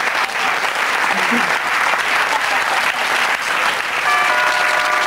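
A studio audience claps and cheers loudly.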